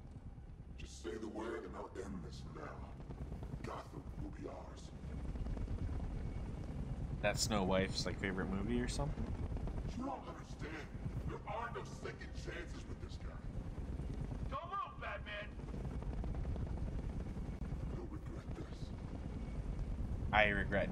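A bearded man talks into a microphone, close by.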